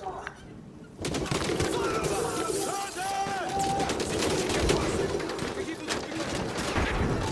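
Rapid automatic gunfire rattles loudly.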